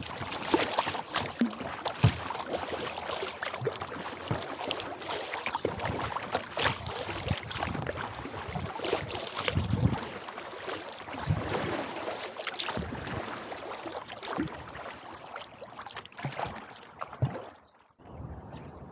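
Fast river water rushes and splashes against a kayak's hull.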